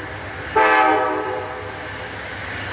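A train horn sounds briefly in the distance.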